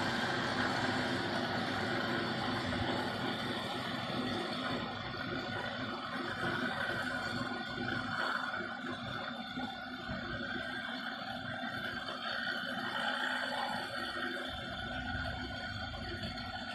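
An electric massager buzzes steadily.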